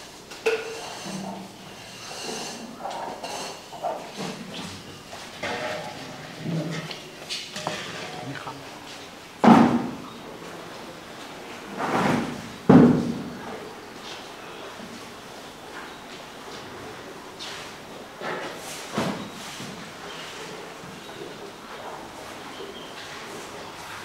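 Cows munch and slurp feed from buckets.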